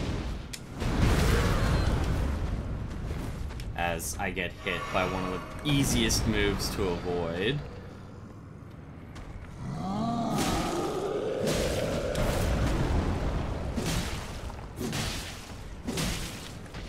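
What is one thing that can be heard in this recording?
Heavy blows and sword strikes thud and clang.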